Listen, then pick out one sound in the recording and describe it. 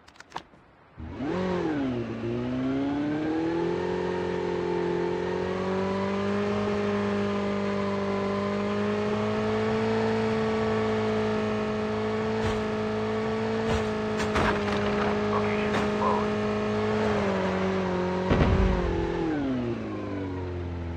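A motorcycle engine starts and roars steadily, then slows near the end.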